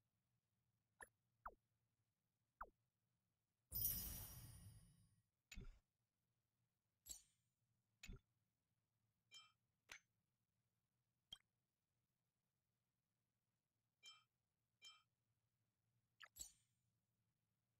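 Short soft menu blips sound now and then.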